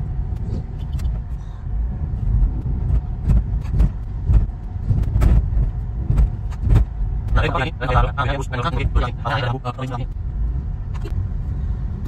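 A car engine hums and tyres rumble on the road from inside the car.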